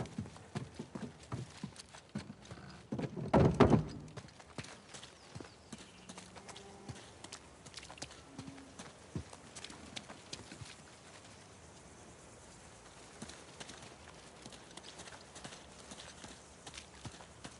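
Footsteps run over stone and dirt.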